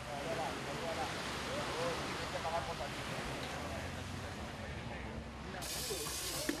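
A crowd of people chatters outdoors in the distance.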